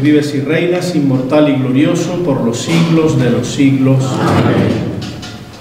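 An elderly man reads aloud in a chanting voice.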